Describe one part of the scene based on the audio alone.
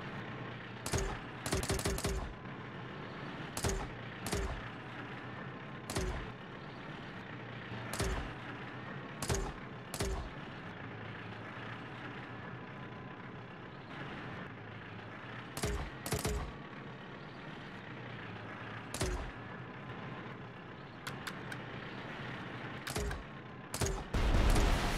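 Video game tank cannons fire in sharp bursts.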